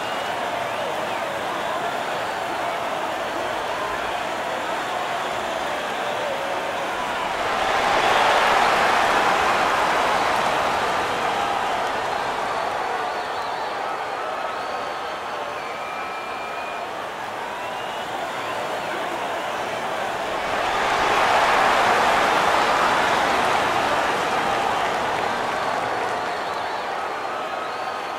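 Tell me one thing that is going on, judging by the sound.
A large crowd cheers and roars in a big arena, swelling loudly twice.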